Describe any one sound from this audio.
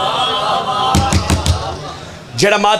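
Men beat their chests with their hands in sharp slaps.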